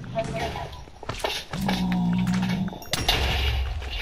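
A sword strikes a creature with dull thuds.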